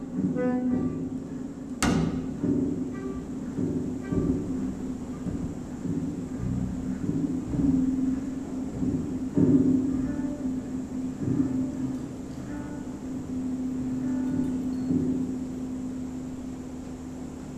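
A clarinet plays a melody.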